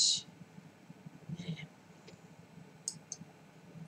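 A glass is set down on a table with a light knock.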